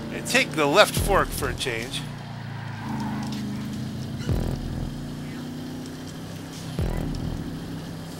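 A car engine roars as the car accelerates.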